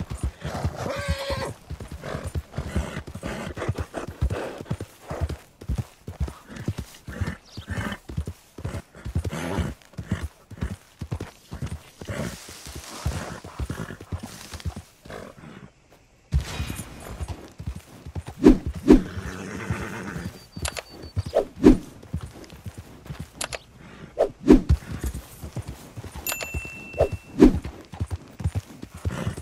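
A horse gallops, its hooves pounding the ground in a quick, steady beat.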